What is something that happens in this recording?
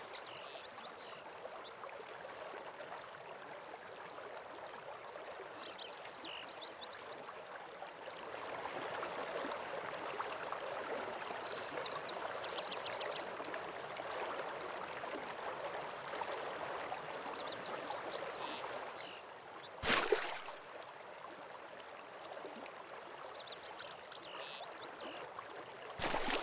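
A waterfall rushes steadily in the distance.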